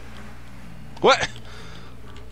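A man exclaims briefly, close to a microphone.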